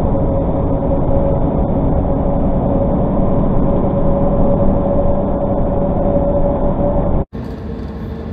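A vehicle's engine hums steadily from inside the cab.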